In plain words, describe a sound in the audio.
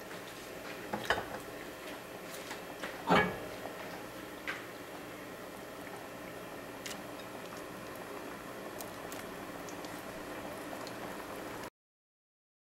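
Pieces of chicken plop into simmering sauce.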